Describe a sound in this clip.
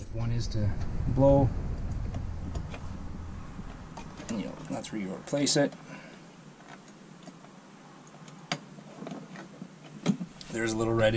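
Small switches click as they are flipped.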